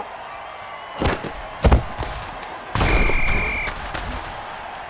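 Football players crash into each other with heavy thuds.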